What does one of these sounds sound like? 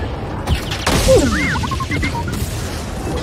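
A small droid beeps and whistles.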